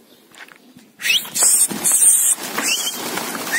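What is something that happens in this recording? A flock of pigeons takes off with a clatter of wings.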